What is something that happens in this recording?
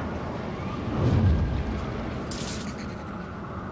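A large heavy door rumbles and grinds open.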